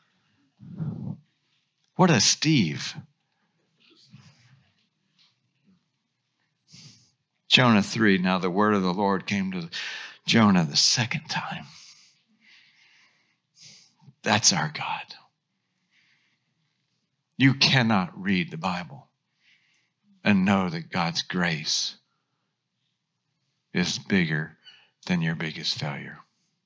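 A middle-aged man speaks calmly through a microphone, reading aloud in a large room.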